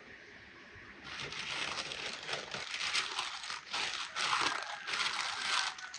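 Paper rustles and crinkles as it is folded and pressed down.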